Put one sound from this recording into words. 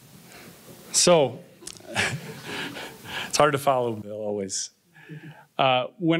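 A man speaks with animation through a microphone in a large hall.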